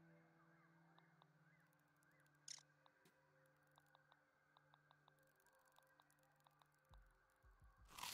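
Short soft menu clicks tick as a selection moves between items.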